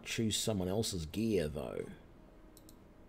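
A middle-aged man talks calmly into a microphone.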